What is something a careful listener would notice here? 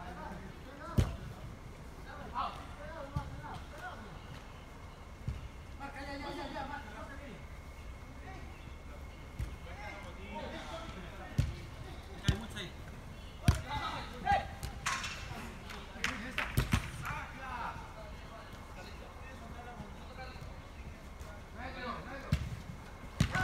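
A football thumps as players kick it, echoing in a large hall.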